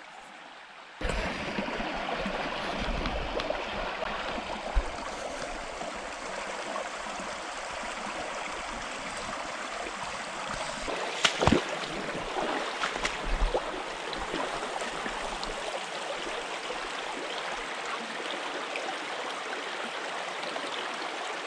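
A shallow stream babbles and trickles over rocks nearby.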